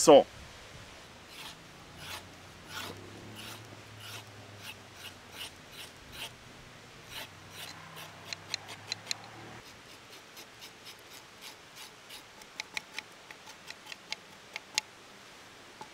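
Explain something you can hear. A knife scrapes and shaves a carrot in short strokes.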